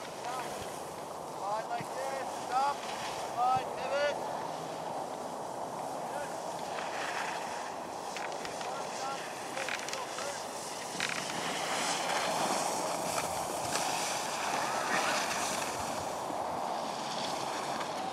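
Skis scrape and hiss over hard snow.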